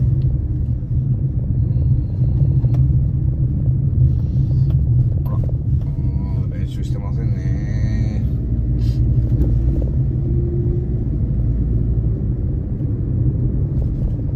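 A car engine hums steadily from inside as the car drives slowly.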